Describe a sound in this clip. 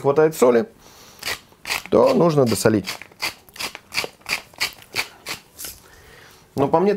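A pepper grinder grinds with quick rasping clicks.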